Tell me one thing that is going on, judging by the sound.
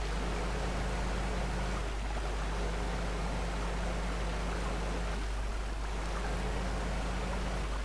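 Water splashes and churns around a driving vehicle.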